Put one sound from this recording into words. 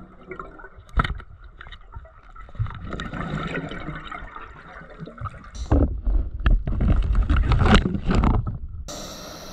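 Metal knocks and scrapes against rock underwater.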